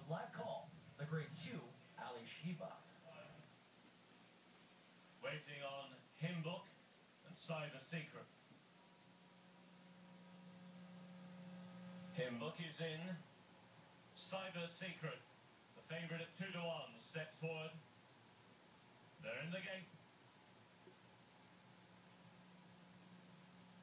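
A television plays a broadcast.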